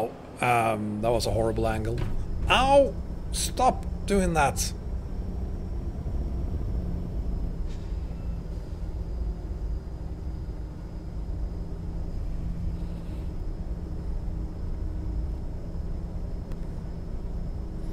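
A truck engine drones steadily as it drives along.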